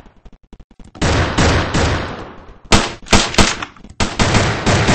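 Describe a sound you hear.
Shotgun blasts boom loudly, one after another, with an echo.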